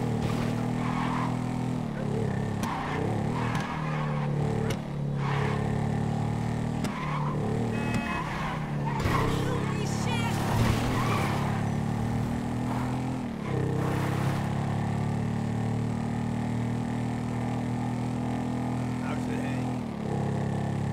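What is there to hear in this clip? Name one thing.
A motorcycle engine hums steadily, rising and falling in pitch as it revs.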